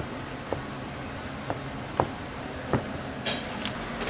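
A knife slices through meat on a cutting board.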